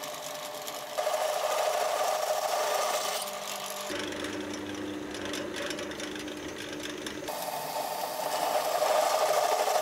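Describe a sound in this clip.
A drill bit grinds and squeals into metal.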